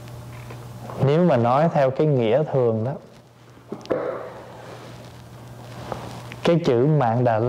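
A man speaks calmly and slowly into a microphone.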